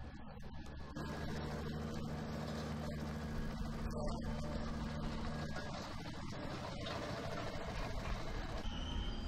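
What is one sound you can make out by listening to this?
A small road roller's engine runs with a steady rumbling drone.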